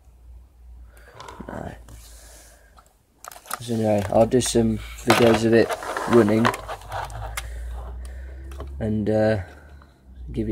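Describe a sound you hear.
A plastic model train is handled with light clicks and knocks.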